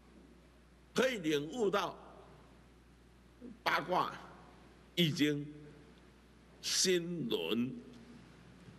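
An elderly man speaks calmly into a microphone in short phrases.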